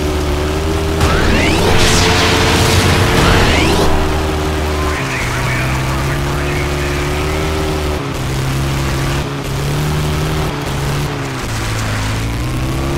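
Tyres crunch and skid on loose dirt.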